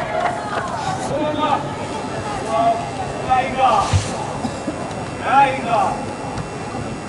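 Young women shout to each other across a large echoing hall.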